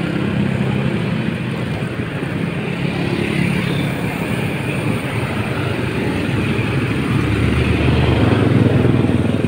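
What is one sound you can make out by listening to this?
Motorcycle engines hum along a busy street outdoors.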